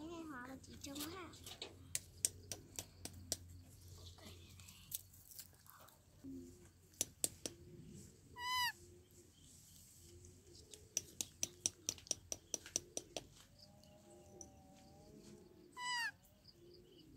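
A baby monkey squeals in short, shrill cries.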